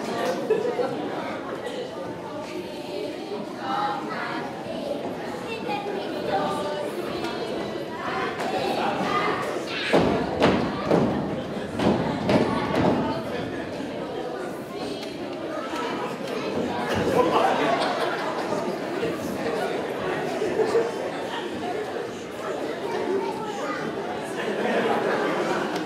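Young children chatter and call out close by.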